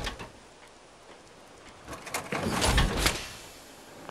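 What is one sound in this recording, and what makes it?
Heavy metal armor clanks and hisses open.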